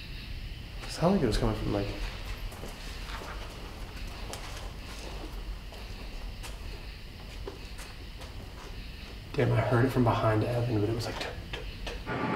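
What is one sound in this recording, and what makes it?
A young man speaks quietly in short bursts, close by.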